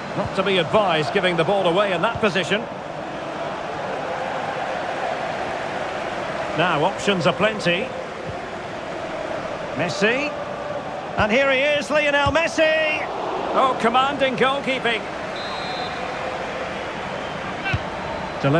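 A large stadium crowd roars steadily in the background.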